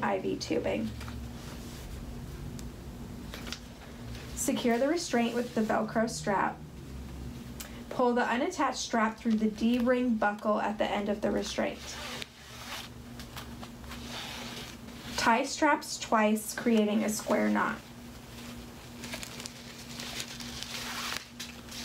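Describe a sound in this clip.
A fabric strap rustles softly as it is wrapped and pulled.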